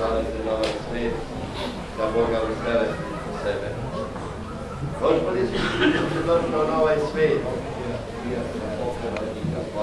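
A man chants in a large echoing hall.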